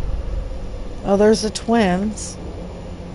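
A man speaks into a microphone with a drawn-out, wavering voice.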